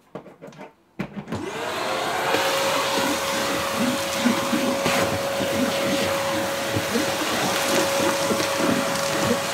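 A vacuum cleaner starts up and runs with a steady whine.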